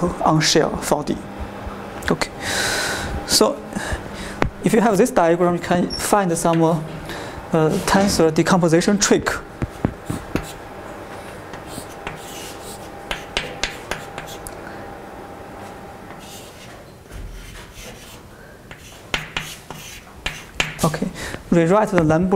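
A young man lectures calmly in a room with a slight echo.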